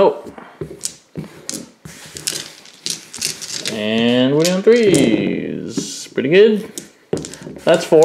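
Dice clatter and tumble across gravelly ground.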